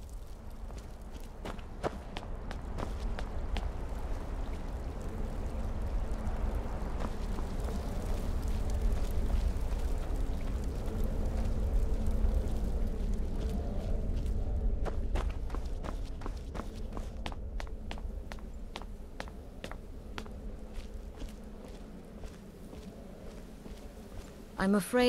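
Footsteps thud on stone floor, echoing.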